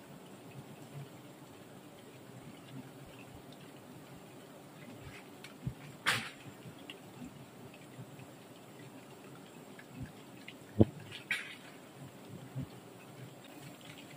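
A knife scrapes and cuts through honeycomb.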